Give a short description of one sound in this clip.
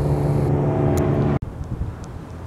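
A boat engine roars loudly as it speeds past.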